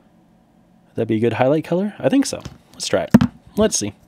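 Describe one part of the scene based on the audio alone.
A plastic base knocks on a hard surface.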